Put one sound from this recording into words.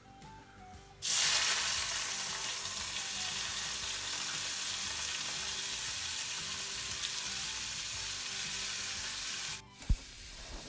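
Vegetables sizzle loudly in hot oil.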